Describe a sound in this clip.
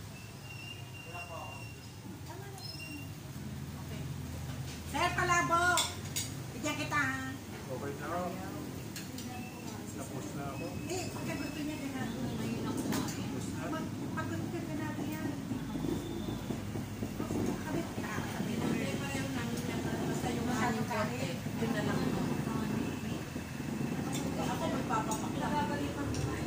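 Several middle-aged and older women chat and laugh together nearby.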